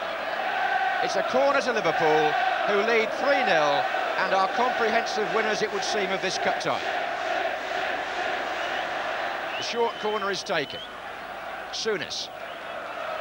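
A large crowd chants and sings loudly.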